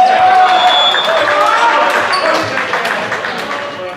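Players shout and cheer in a large echoing hall.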